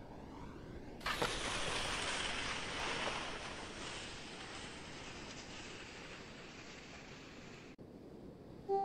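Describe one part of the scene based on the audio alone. Skis hiss and scrape over snow as a jumper lands and slides to a stop.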